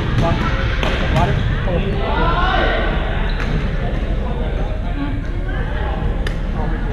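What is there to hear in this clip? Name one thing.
Young adults call out to one another across a large echoing gym.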